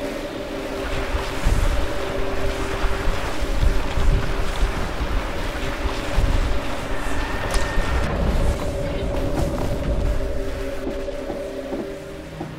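A deep rumble swells and churns.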